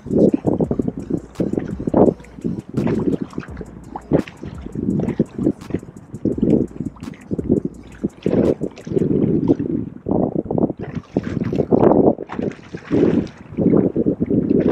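Water splashes and slaps against a small boat's hull.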